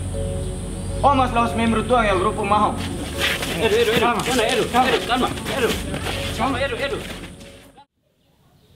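Young men argue loudly, shouting over each other.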